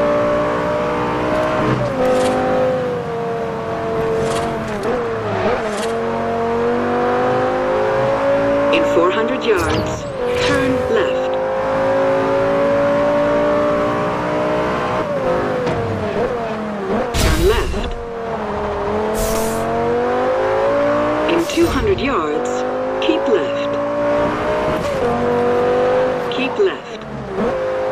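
A sports car engine roars, its pitch rising and falling as it shifts gears.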